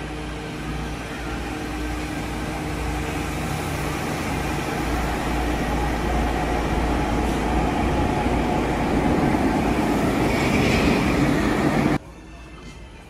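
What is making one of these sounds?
A train rumbles and whines as it pulls through an underground station.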